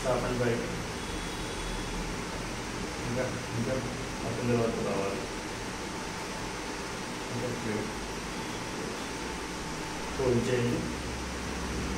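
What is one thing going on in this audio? A young man speaks calmly in short phrases nearby.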